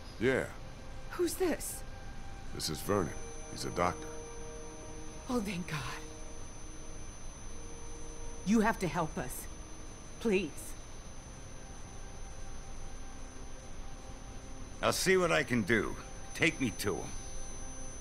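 An elderly man speaks in a low, worried voice.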